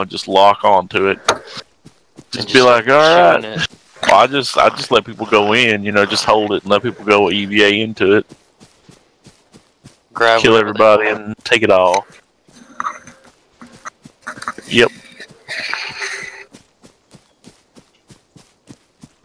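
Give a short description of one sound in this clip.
Footsteps crunch steadily over dry grass and gravel.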